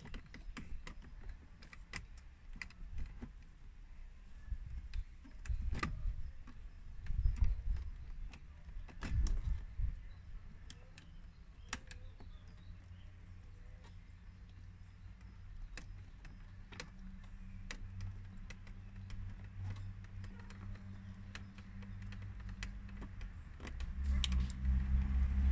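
A car's ignition key clicks repeatedly.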